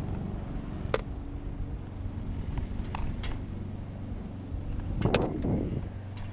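Skateboard wheels clack over cracks in the road.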